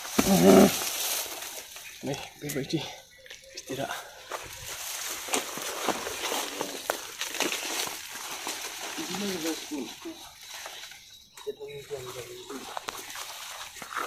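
Leaves rustle as a young man pushes through plants.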